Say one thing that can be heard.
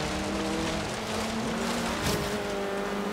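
Tyres skid on loose dirt.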